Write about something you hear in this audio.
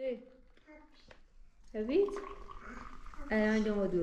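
Tea pours into glasses.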